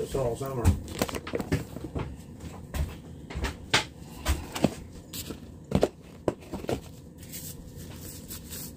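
A plastic glove crinkles and rustles.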